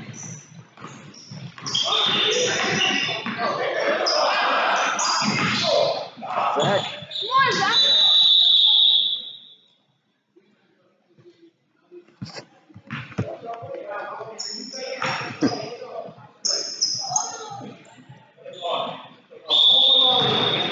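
A crowd cheers and shouts, echoing in a large hall.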